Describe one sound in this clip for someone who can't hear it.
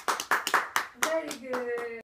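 A small child squeals happily close by.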